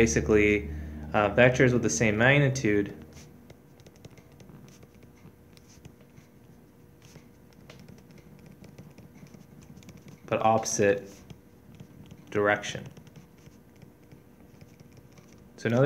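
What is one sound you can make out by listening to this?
A stylus taps and scratches lightly on a tablet.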